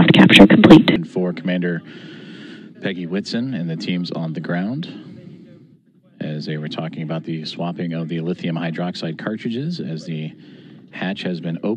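A man speaks through a crackly radio link.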